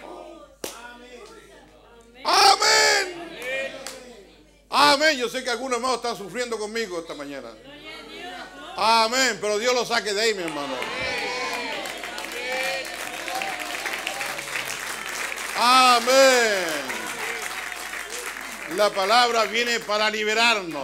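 An elderly man preaches with animation through a microphone in a large echoing hall.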